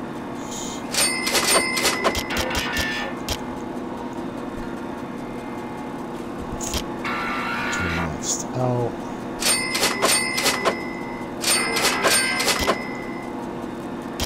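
A bright jingling chime rings several times, like coins at a till.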